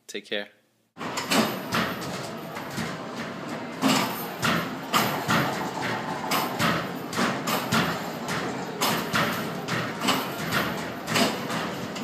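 Basketballs thud and bounce repeatedly.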